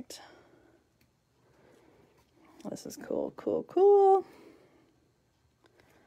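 Paper cards slide and rustle softly under a hand.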